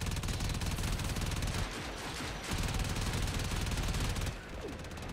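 A rapid-fire gun shoots in fast bursts.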